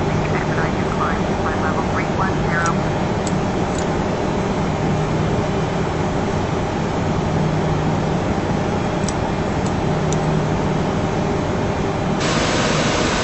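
Jet engines hum steadily from inside a cockpit.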